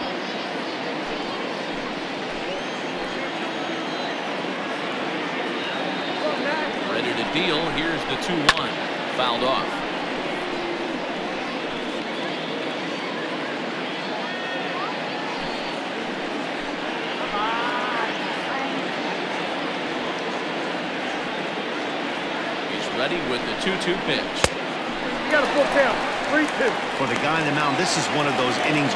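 A large crowd murmurs steadily.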